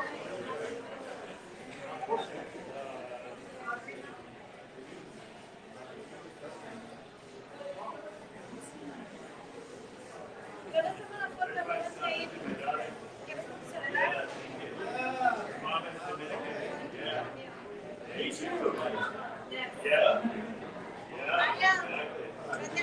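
Several adults chat at a distance in a busy room.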